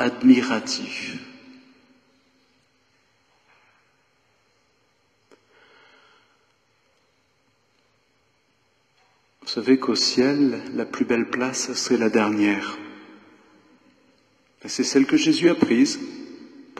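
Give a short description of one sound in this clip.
An elderly man speaks calmly into a microphone in a large echoing hall, pausing between phrases.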